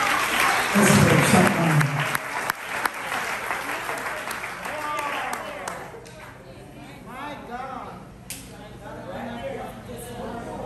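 A man preaches loudly and with animation through a microphone and loudspeakers in an echoing hall.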